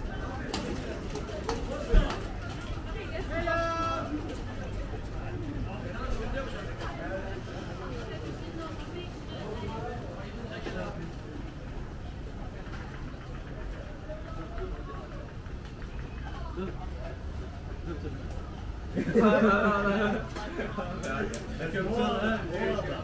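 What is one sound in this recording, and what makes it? A busy street murmurs with distant voices and chatter.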